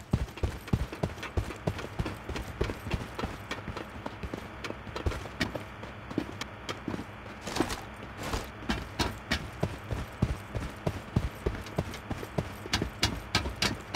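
Footsteps thud quickly on metal stairs and floors.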